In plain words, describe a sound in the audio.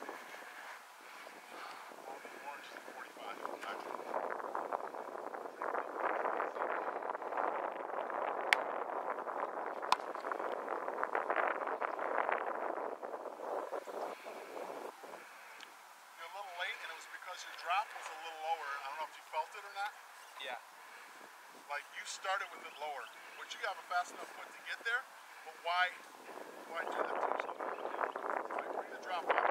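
Wind blows across a microphone outdoors in gusts.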